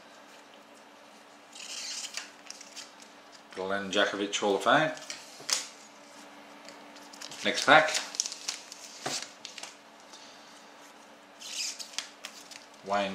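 Trading cards rustle and flick as they are handled.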